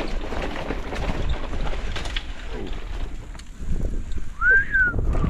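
A mountain bike rattles as it bounces over rough ground.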